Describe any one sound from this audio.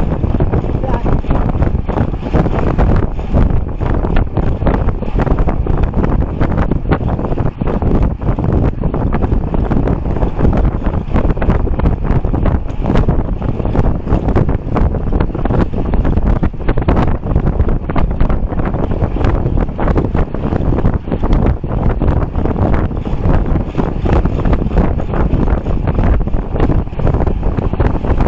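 Strong wind rushes and buffets loudly against the microphone.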